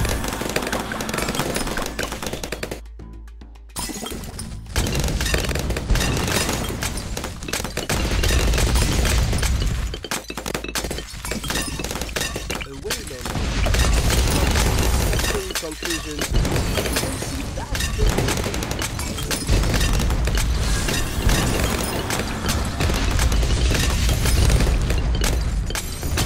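Game sound effects pop and burst rapidly as towers fire.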